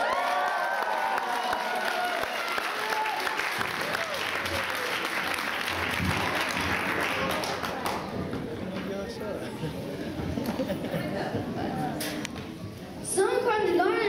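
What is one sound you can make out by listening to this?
A group of children sing together in a large room.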